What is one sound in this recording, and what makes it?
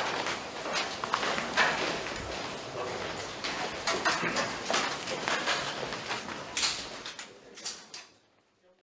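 Wooden panels knock and scrape as they are folded together.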